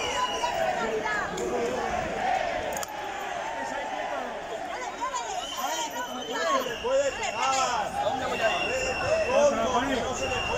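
Several men talk over one another nearby, outdoors.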